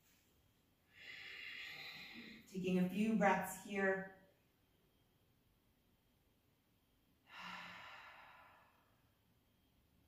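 A young woman breathes out slowly and audibly.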